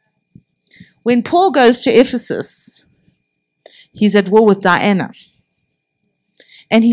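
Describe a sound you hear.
A middle-aged woman speaks calmly into a microphone, with pauses.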